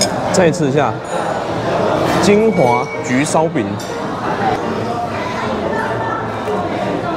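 A murmur of diners chatting fills a large room.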